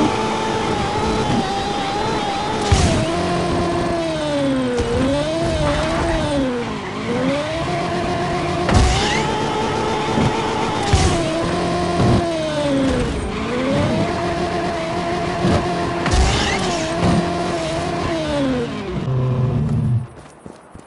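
A racing car's engine revs up and down.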